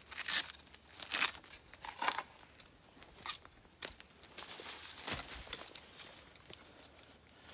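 Metal gear clinks and rattles as a man handles it.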